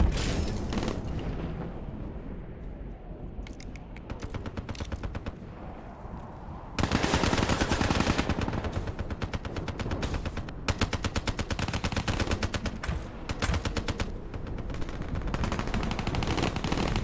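A rifle fires rapid bursts of gunshots.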